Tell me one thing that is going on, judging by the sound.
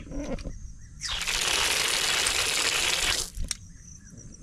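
Water gushes from a tap and splashes onto the ground.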